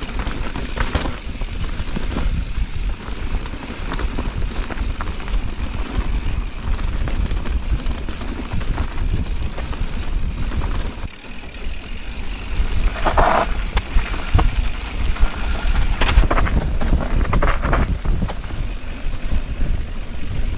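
Bike tyres roll and rattle over a rough dirt trail.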